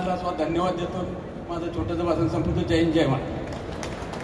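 A man speaks into a microphone to a crowd, heard through loudspeakers in a large echoing hall.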